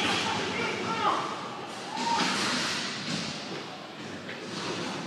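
Skates scrape on the rink floor.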